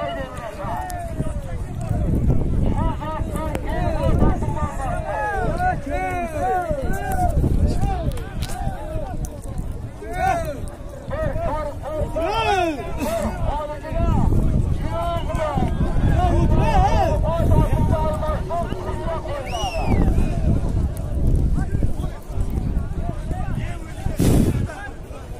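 A large crowd of men shouts and cheers loudly outdoors.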